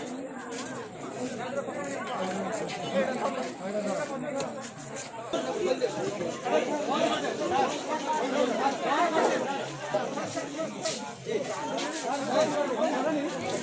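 A crowd of men and women talk and shout over each other close by.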